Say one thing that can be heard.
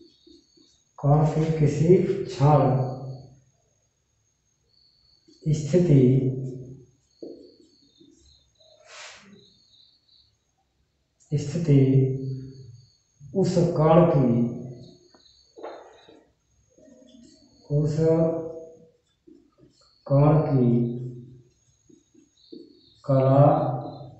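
A man speaks calmly and clearly close by, in short phrases with pauses.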